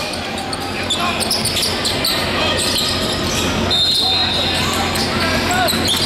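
Sneakers squeak sharply on a hardwood court, echoing in a large hall.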